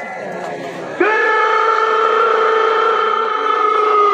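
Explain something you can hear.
A man calls out a long, drawn-out note through a loudspeaker.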